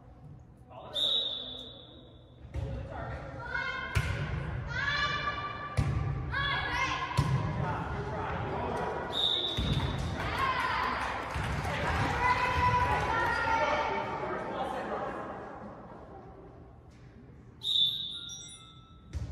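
A referee's whistle blows sharply in an echoing gym.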